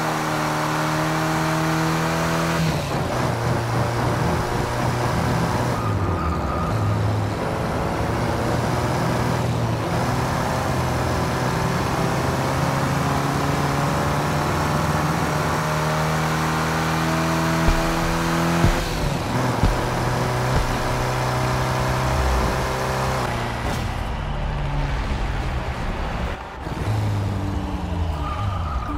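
A sports car engine revs loudly, rising and falling with gear changes.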